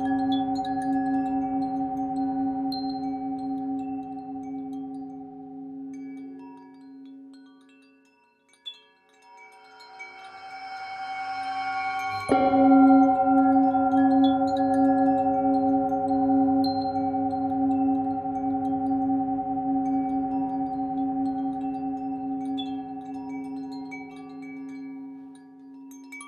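A metal singing bowl rings with a deep, humming tone that swells and fades.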